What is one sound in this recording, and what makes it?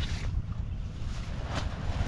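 Leaves rustle as a hand handles a plant.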